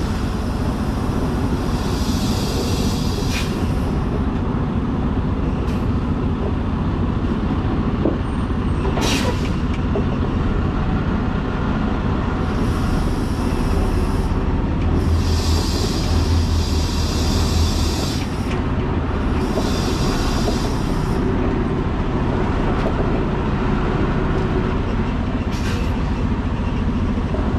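A load rattles and clunks on a truck bed.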